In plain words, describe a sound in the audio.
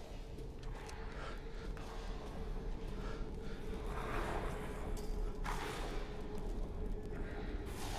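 Footsteps thud slowly on a creaking wooden floor.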